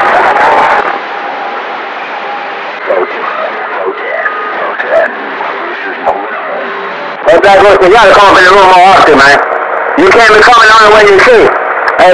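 A radio receiver hisses and crackles with static through its loudspeaker.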